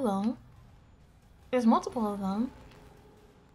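A young woman speaks animatedly into a microphone in a high voice.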